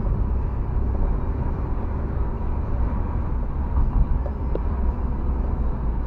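A car engine hums steadily with road rumble from inside the cabin.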